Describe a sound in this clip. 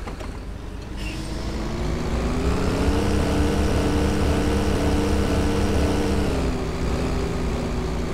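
A bus engine revs up and rises in pitch as it pulls away.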